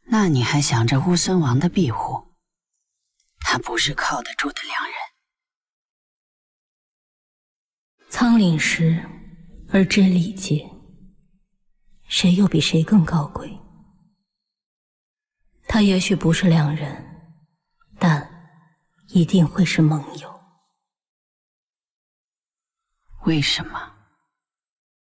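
A young woman speaks calmly and wistfully in a soft voice, close by, in short phrases with pauses.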